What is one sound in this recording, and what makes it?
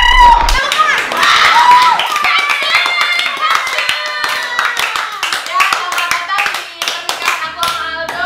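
Hands clap rapidly.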